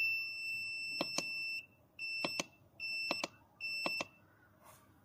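Plastic buttons click under a finger.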